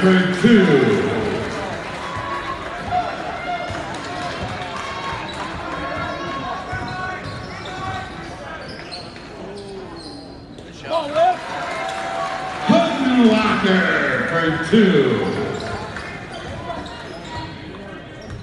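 A crowd chatters and cheers throughout a large echoing gym.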